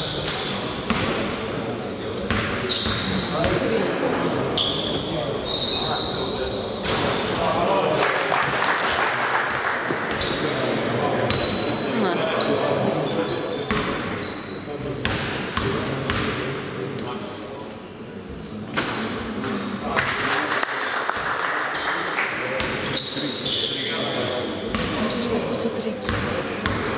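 Basketball shoes squeak on a hard court.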